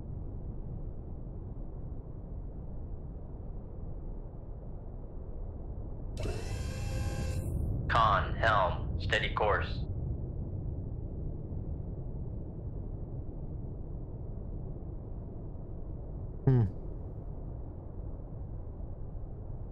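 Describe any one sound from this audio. A submarine's engine rumbles low and steady underwater.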